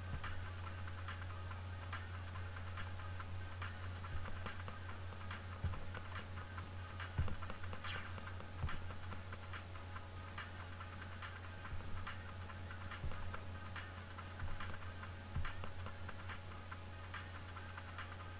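Game music plays with a steady electronic beat.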